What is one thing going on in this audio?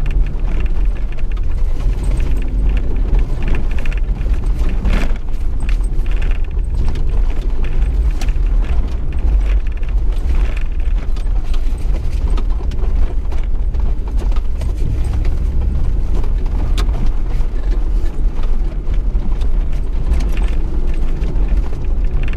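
Tyres crunch and bump over rocky dirt.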